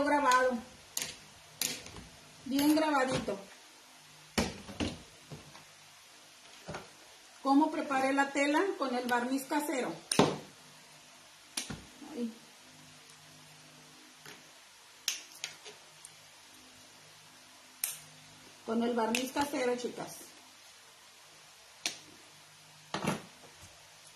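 Pliers snip and click on metal wire.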